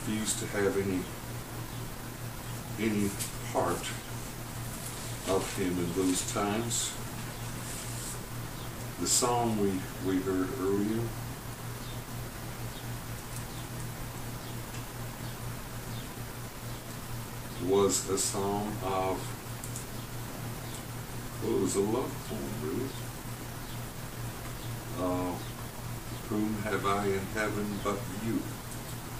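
An elderly man reads aloud slowly and calmly, with long pauses.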